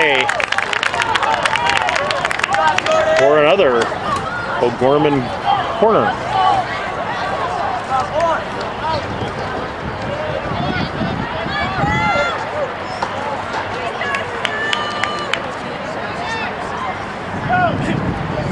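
Young players shout and call out across an open field outdoors.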